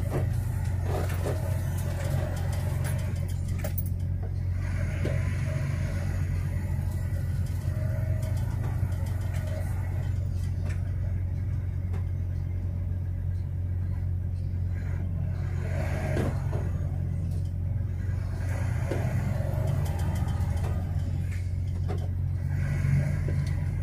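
Cars and trucks whoosh past in the other direction.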